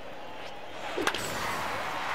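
A baseball bat cracks against a ball.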